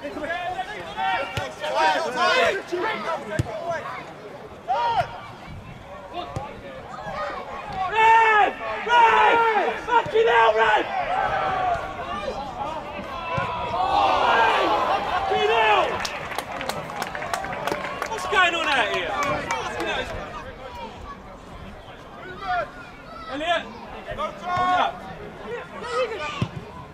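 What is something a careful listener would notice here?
A ball is kicked with dull thuds.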